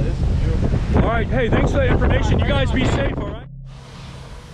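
Strong wind roars and buffets outdoors.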